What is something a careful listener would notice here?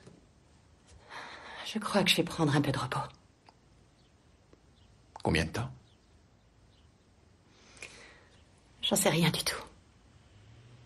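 A woman speaks calmly and quietly nearby.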